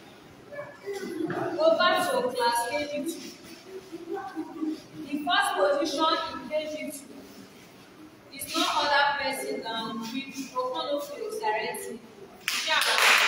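A woman reads aloud in a raised voice nearby.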